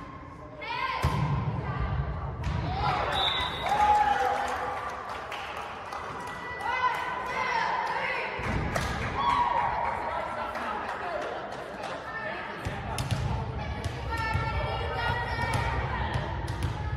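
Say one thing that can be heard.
A volleyball is struck with sharp slaps that echo in a large hall.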